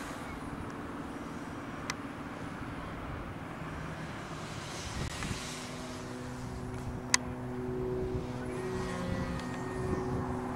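A model plane's engine buzzes overhead, rising and falling in pitch.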